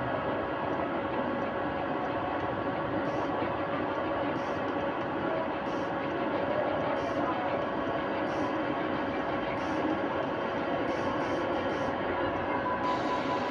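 Game music plays steadily through television speakers.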